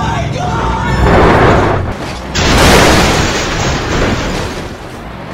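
Trucks crash together with a loud metal crunch.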